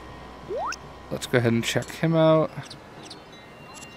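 Short electronic menu chimes ring out as options are selected.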